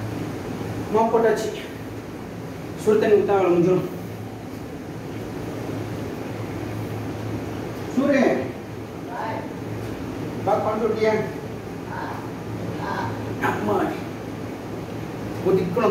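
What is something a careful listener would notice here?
A man speaks loudly in short bursts close by.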